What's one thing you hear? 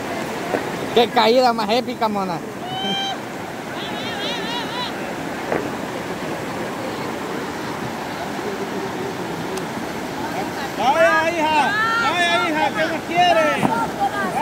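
Young people shout and laugh nearby, outdoors.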